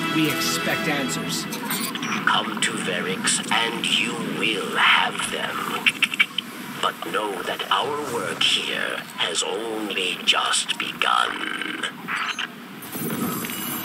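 A middle-aged man talks calmly through a computer microphone.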